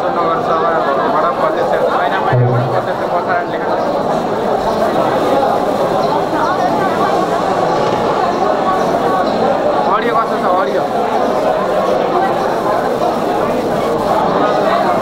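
A man speaks steadily through a loudspeaker in an echoing hall.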